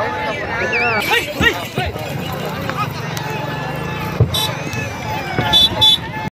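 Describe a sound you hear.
A crowd of men shout and whoop outdoors.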